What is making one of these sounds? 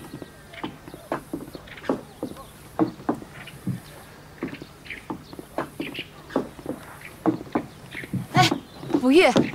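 High heels click on wooden decking.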